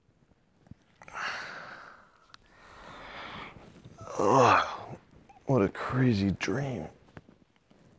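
A man groans and mumbles sleepily close by.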